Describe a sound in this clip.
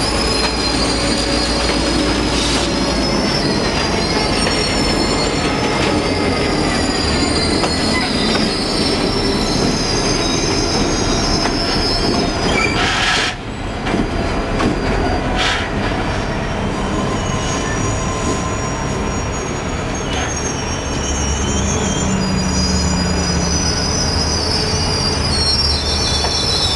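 Metal wheels squeal with high, thin screeches against the rails.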